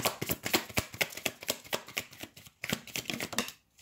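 A playing card slides and taps onto a wooden table.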